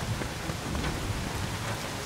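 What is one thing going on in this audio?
Footsteps run on a stone floor.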